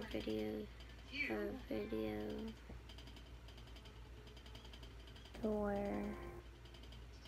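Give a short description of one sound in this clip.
A young girl speaks close to a microphone in short, drawn-out phrases.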